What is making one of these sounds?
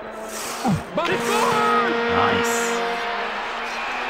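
A goal horn blares steadily.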